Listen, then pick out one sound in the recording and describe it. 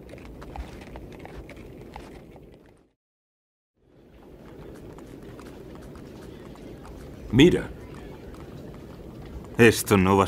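Horses' hooves thud softly on snow.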